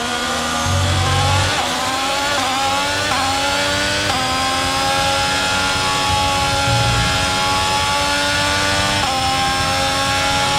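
A Formula One car engine screams at full throttle, shifting up through the gears.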